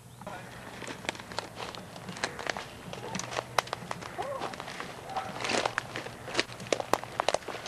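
Branches brush and rustle against a jacket.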